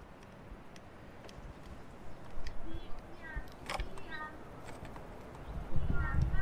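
A caulking gun clicks as sealant is squeezed out.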